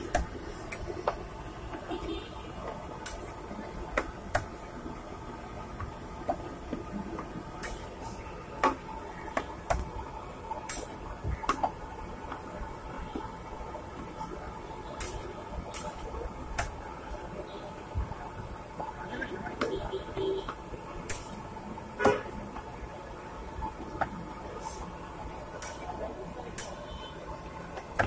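A metal spatula taps and scrapes on a hot griddle.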